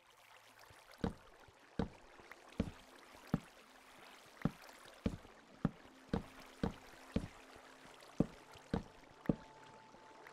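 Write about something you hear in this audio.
Game blocks break with short, sharp crunching pops, repeated at a quick steady pace.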